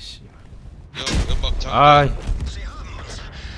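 A shell explodes with a loud boom.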